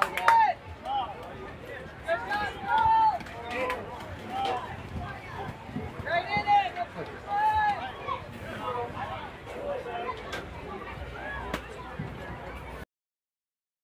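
Young girls call out and cheer outdoors.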